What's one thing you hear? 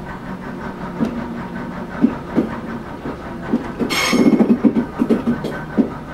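Train wheels clatter and knock over rail joints.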